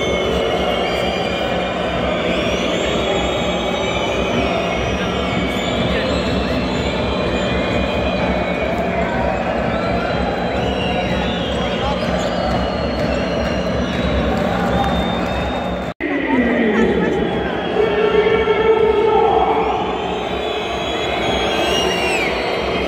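A large crowd roars and chants in a big echoing arena.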